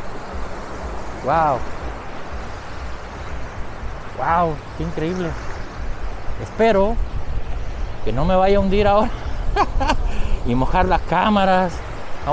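Small waves wash and lap onto the shore.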